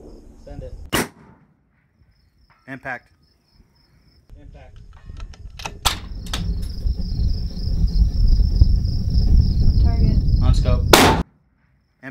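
A rifle fires loud sharp shots.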